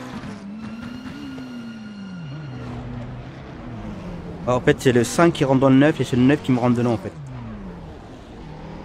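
A racing car engine drones and changes pitch as it shifts gears.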